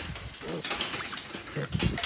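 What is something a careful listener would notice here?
An animal shuffles and scrabbles inside a wire cage trap.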